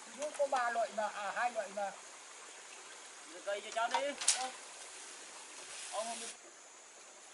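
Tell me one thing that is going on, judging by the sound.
An elderly man calls out loudly outdoors.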